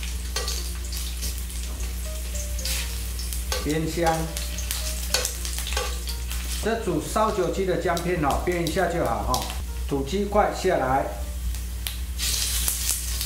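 Oil sizzles gently in a hot pan.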